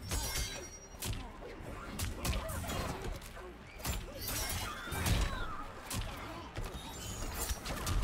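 Magic energy blasts whoosh and crackle.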